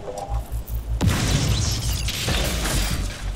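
A loud burst of energy crackles and booms.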